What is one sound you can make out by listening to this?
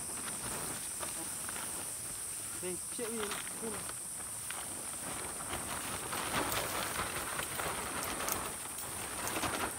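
A nylon tent fly rustles and crinkles as it is pulled over a tent.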